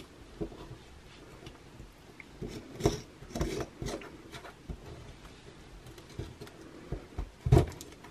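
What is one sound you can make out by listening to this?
A plastic tool scrapes and taps at crumbly plaster.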